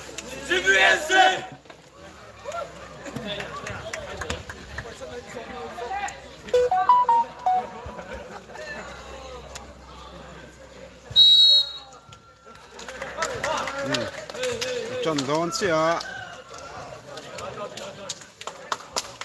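A crowd of young men chatters and calls out outdoors.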